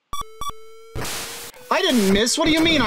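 A hissing electronic game noise rises and warbles.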